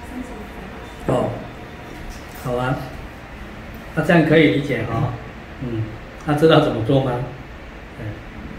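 A middle-aged man speaks calmly nearby, in short phrases.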